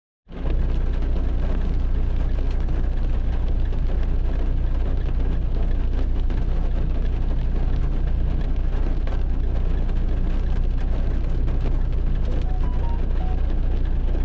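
Raindrops tap sharply against glass.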